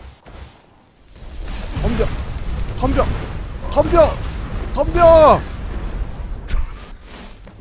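Flames roar loudly from a fire spell.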